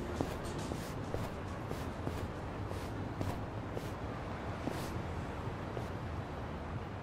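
Footsteps walk steadily on pavement.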